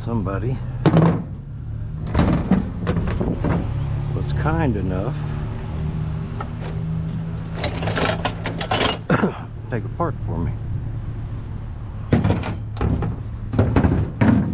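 Heavy metal parts clank as they are set down on a metal truck bed.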